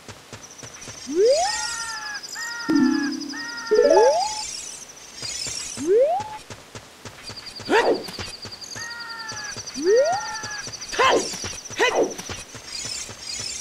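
A fairy chimes with high, tinkling rising tones.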